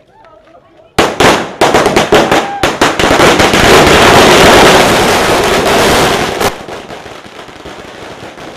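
A long string of firecrackers bursts in rapid, loud bangs.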